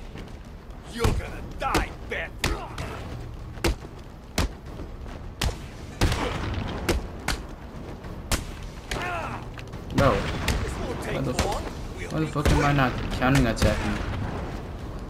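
Men grunt and cry out in pain during a brawl.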